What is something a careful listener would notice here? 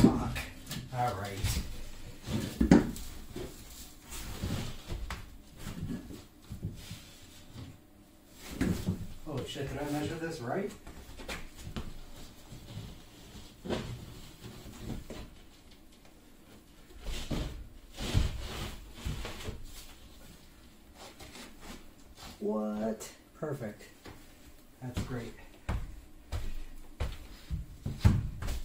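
A large board scrapes and knocks against the floor.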